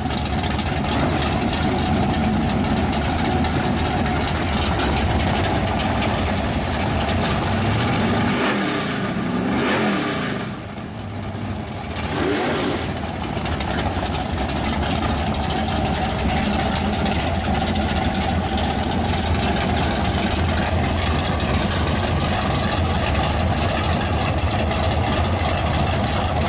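A drag car engine idles loudly with a deep, lumpy rumble.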